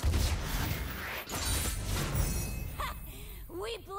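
A bright triumphant chime rings out.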